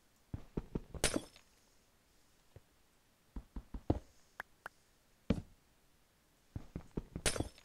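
Ice blocks shatter and crumble.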